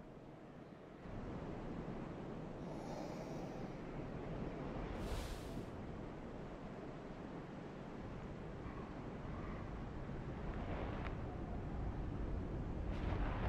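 Strong wind roars and gusts, carrying blowing sand.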